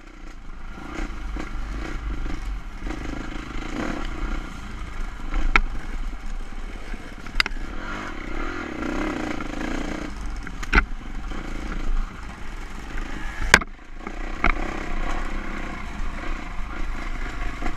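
A dirt bike engine revs and putters close by.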